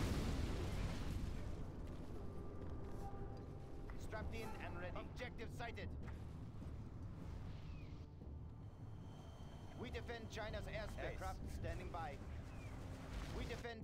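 Explosions boom and rumble deeply.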